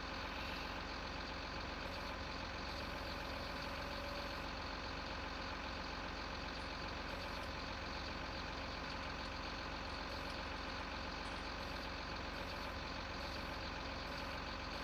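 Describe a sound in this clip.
A diesel engine idles with a steady low rumble.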